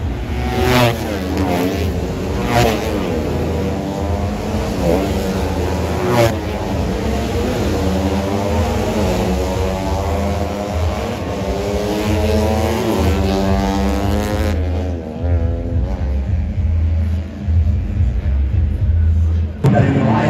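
Several racing motorcycle engines scream loudly, rising and falling in pitch as the bikes rev and pass close by.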